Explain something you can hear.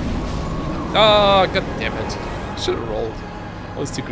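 Magic spells whoosh and shimmer.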